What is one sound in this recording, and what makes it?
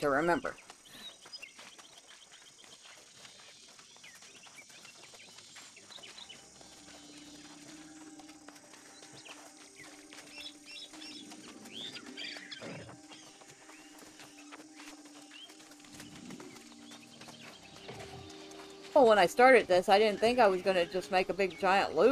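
Footsteps pad steadily across sand and grass.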